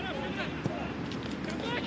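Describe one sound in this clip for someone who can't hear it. A football is kicked hard with a dull thud.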